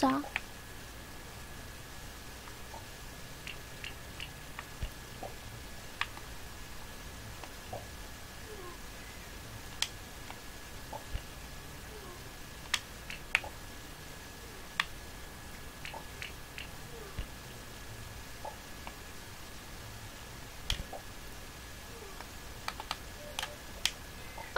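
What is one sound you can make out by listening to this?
Short soft game sound effects click and blip now and then.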